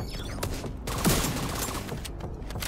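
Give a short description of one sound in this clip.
Rifle shots fire in a quick burst.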